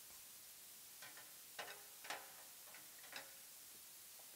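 Small objects knock and clatter briefly as a man handles percussion instruments.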